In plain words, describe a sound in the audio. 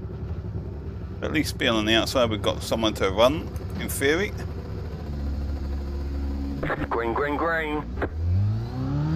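A racing car engine idles with a low rumble.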